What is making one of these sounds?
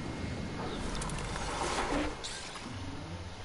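A glider snaps open with a whoosh.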